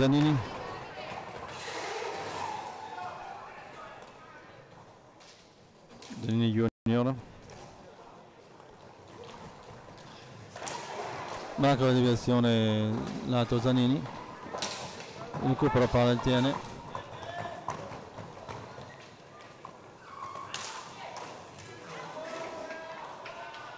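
Roller skates roll and scrape across a hard floor.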